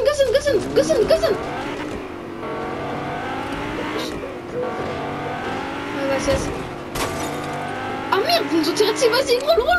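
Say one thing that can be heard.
A car engine hums and revs as a car drives along.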